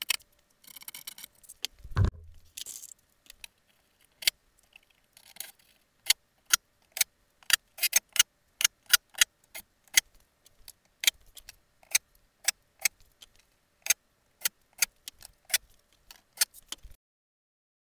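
Wooden panels knock and clatter against a wall.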